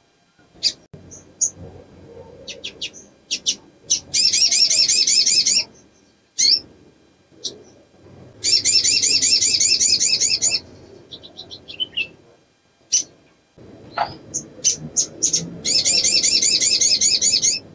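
A small bird sings close by in rapid, high trilling bursts with sharp chirps between them.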